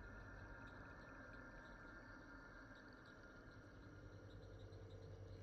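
A fire crackles and hisses steadily.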